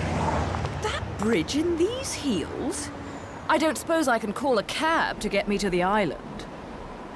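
A woman speaks calmly and coolly, close by.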